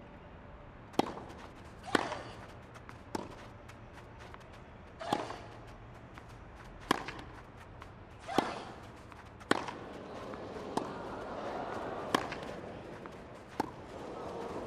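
Tennis rackets strike a ball back and forth in a rally.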